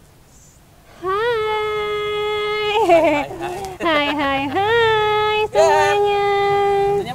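A young woman sings long, drawn-out notes close to a microphone.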